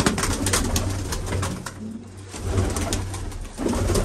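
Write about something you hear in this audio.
Pigeon wings flap as birds take off nearby.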